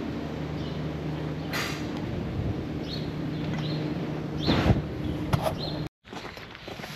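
Cows snort and breathe close by.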